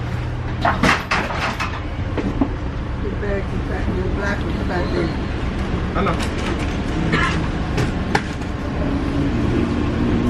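A young man talks close to a phone microphone.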